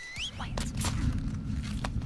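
A young woman whispers close by.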